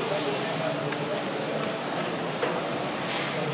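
A player presses the button of a game clock with a click.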